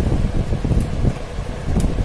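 A screwdriver clicks as it turns a screw in a metal panel.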